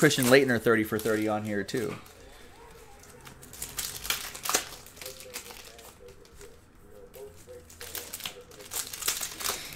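Plastic card wrappers crinkle and rustle as they are torn open.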